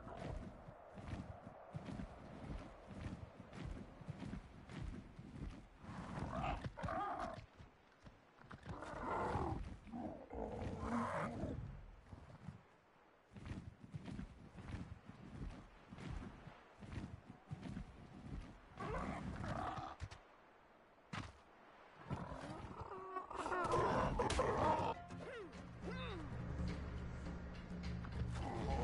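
Large leathery wings beat in flight with rhythmic thumps.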